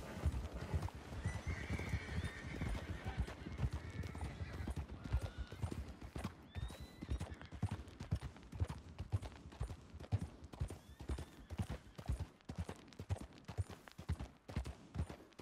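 A horse's hooves thud steadily on a dirt path.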